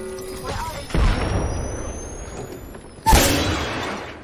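A heavy blast booms loudly.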